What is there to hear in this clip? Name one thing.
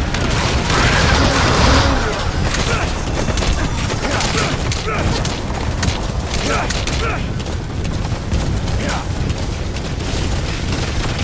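Horse hooves thud steadily on rough ground at a gallop.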